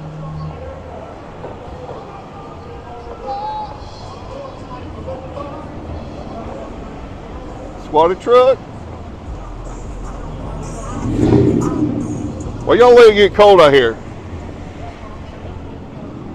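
Cars drive past on a street.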